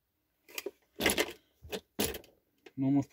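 A toy truck knocks down onto a table.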